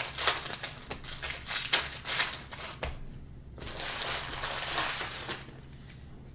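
Foil wrapping crinkles and tears as a pack is opened.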